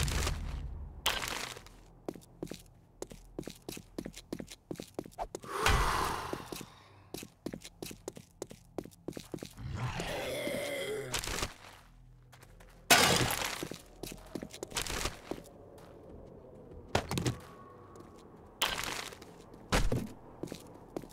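Footsteps crunch steadily on a hard road.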